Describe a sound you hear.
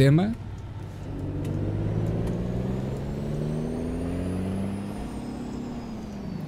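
A truck engine rumbles steadily and slowly rises in pitch.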